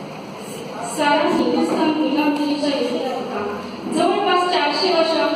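A group of women sings together in a room with some echo.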